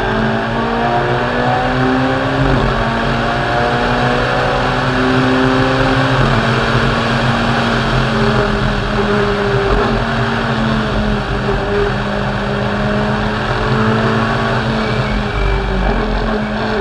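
Tyres rumble on tarmac.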